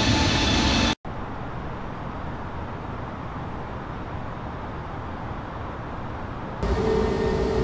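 A low, muffled hum fills an aircraft cockpit.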